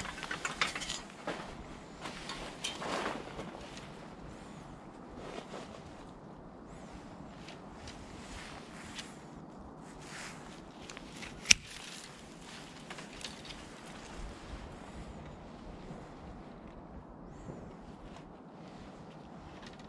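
Branches rustle and scrape as they are pulled.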